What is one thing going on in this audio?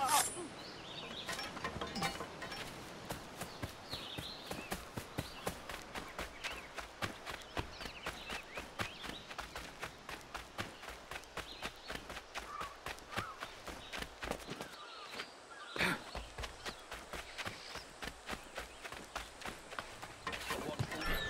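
Footsteps run quickly over sand and dirt.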